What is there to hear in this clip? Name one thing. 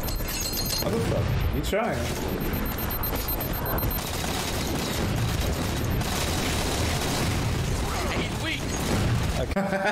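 Explosions boom.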